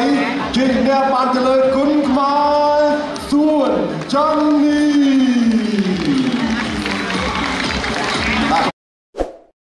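A man announces with drawn-out calls through a loudspeaker in a large hall.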